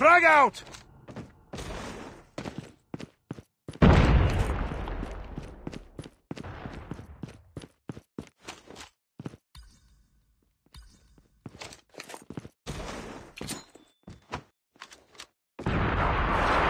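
Footsteps tap steadily across hard floors.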